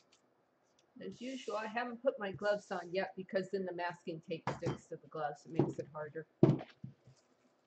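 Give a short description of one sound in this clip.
An older woman speaks calmly and close by.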